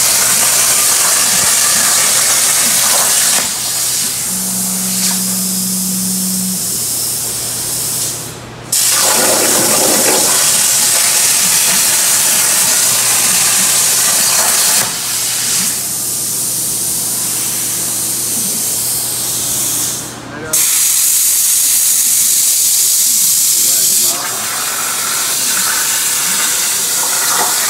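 A plasma torch roars and hisses loudly as it cuts metal, in bursts.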